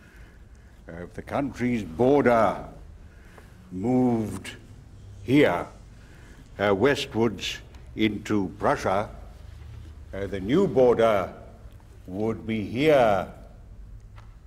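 An elderly man speaks firmly and with emphasis, close by.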